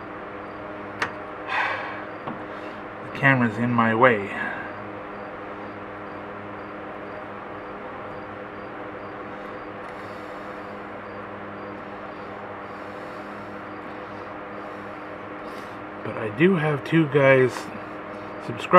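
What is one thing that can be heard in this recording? A small metal tool clicks and scrapes against a machine part.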